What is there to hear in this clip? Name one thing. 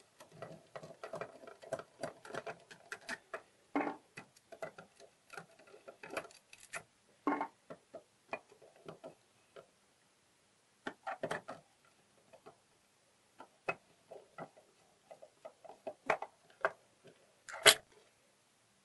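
A screwdriver clicks and scrapes against a metal lock.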